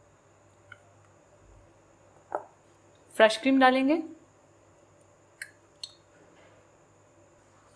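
A thick sauce plops softly into a bowl.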